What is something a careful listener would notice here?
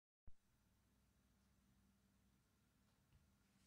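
An electric guitar strums softly through a small amp.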